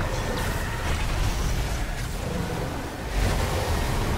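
Wind rushes loudly past during a fast swing through the air.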